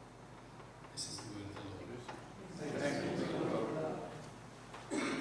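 A man reads out calmly through a microphone in an echoing room.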